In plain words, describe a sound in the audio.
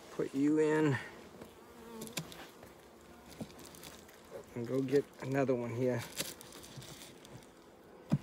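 Bees buzz softly.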